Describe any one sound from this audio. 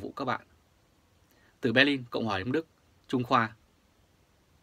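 A man speaks calmly into a microphone, close by, in short phrases.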